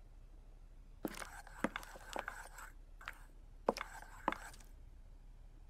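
A pot clatters on a stove.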